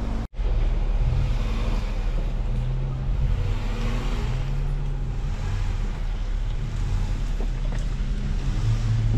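An off-road vehicle's engine revs as it crawls over rocks.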